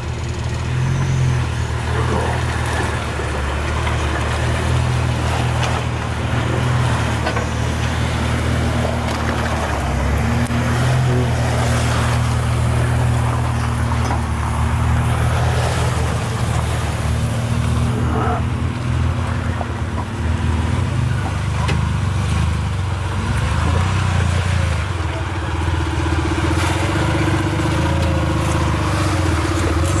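Tyres crunch over loose sand.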